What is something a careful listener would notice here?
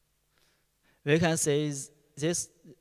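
A young man speaks into a microphone.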